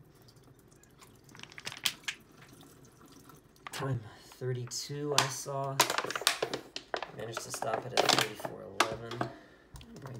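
Plastic bottles clatter and knock together.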